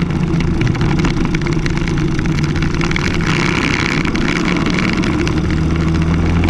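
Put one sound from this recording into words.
A kart engine buzzes loudly up close and rises in pitch as it speeds up.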